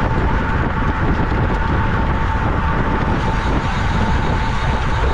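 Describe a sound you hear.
A bicycle drivetrain whirs steadily.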